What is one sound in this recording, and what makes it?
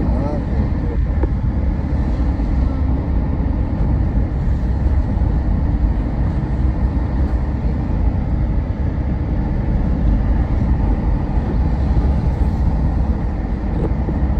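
A car engine hums steadily from inside a moving car.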